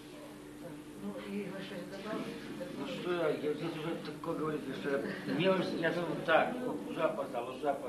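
Several people chat and laugh nearby.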